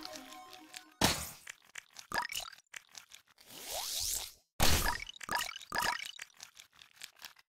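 Game weapons fire in quick bursts of blasts.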